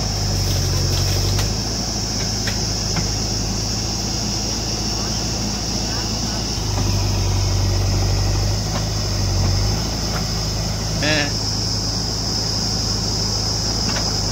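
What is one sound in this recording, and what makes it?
A backhoe loader's diesel engine rumbles and revs nearby.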